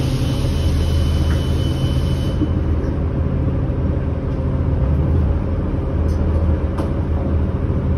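A bus engine hums and rumbles steadily from inside the cabin.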